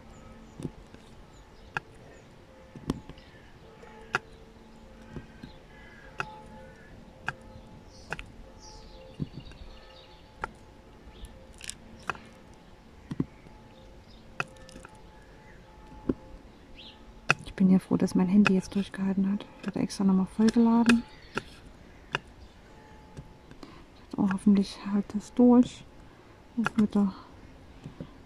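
A plastic pen taps small beads into place with soft, regular clicks.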